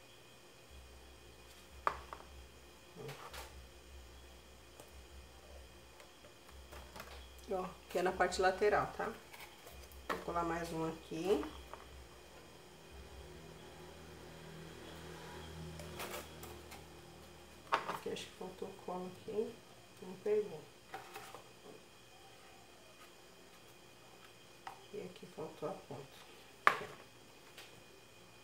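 Paper and foam pieces rustle and tap on a table as they are handled.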